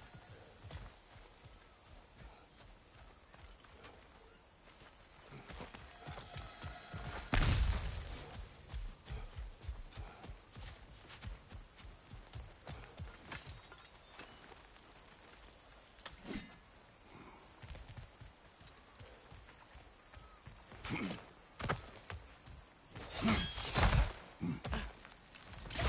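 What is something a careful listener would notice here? Footsteps crunch over dirt and leaves.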